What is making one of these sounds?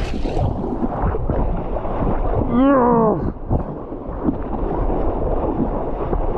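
A paddle dips and pulls through the water.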